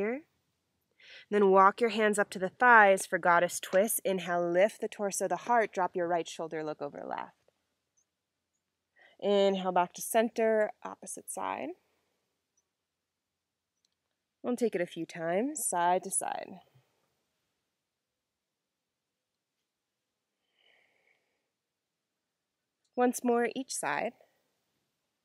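A young woman speaks calmly and clearly, close to a microphone, in short phrases with pauses.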